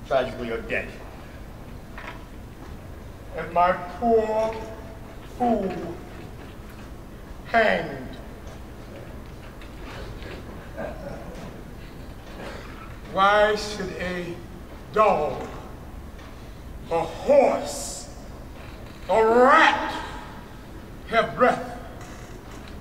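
A man speaks in short dramatic bursts into a stage microphone.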